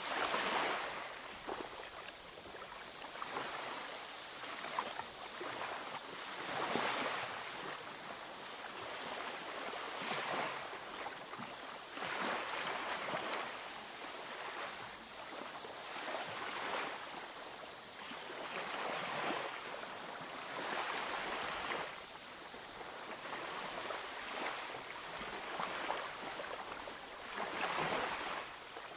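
Paper pages rustle and swish as they are turned one by one.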